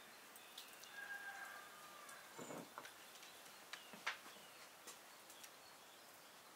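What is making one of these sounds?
A spatula clinks and scrapes against a glass bowl.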